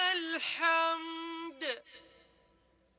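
A man chants in a long, drawn-out voice over loudspeakers, echoing across a wide open space.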